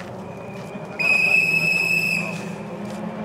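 A marshal blows a shrill whistle.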